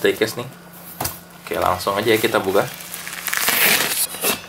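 Bubble wrap crinkles as it is handled.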